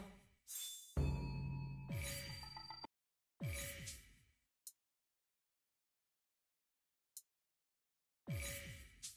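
Menu selections click and chime.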